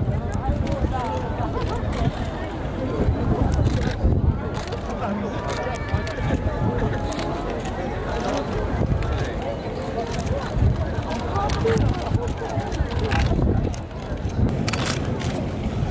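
A large crowd of people chatters in a steady murmur all around.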